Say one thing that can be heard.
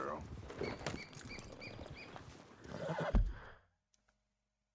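Horse hooves thud on a dirt path.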